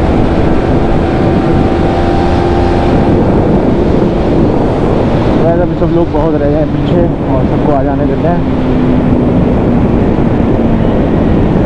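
A single-cylinder sport bike engine hums while cruising along a road.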